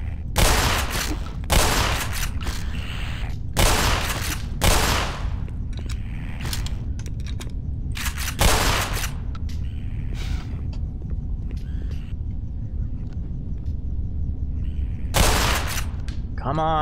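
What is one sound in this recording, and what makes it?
Shotgun blasts boom loudly in a reverberant space, one after another.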